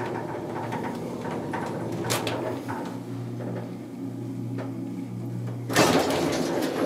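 An elevator hums steadily while moving.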